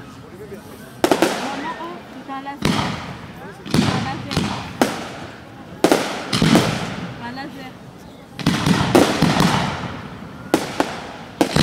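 Fireworks burst with loud bangs that echo away.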